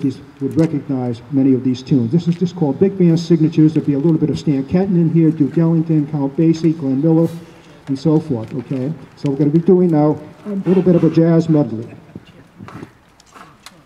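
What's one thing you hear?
A man speaks loudly to an audience outdoors, amplified through a loudspeaker.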